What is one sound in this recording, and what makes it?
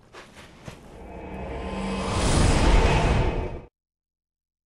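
A loud rushing whoosh swells and cuts off.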